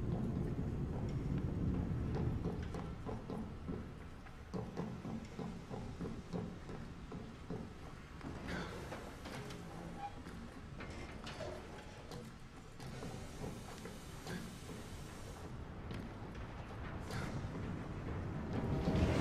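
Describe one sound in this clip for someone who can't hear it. Footsteps clatter quickly on metal stairs and grating.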